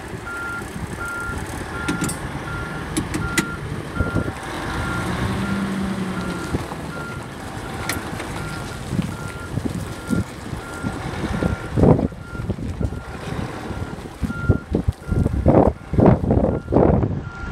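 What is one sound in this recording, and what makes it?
Wind gusts across an open outdoor lot.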